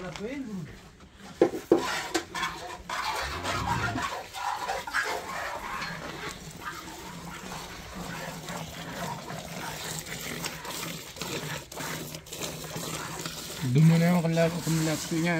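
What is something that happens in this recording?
Milk squirts into a metal bucket in quick spurts.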